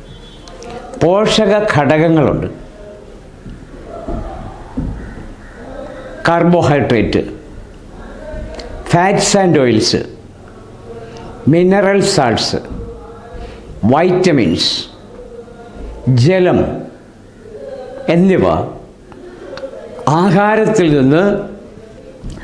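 An elderly man speaks slowly and calmly into a close microphone, in short phrases with pauses.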